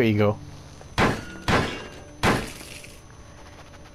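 A metal box is struck with loud bangs.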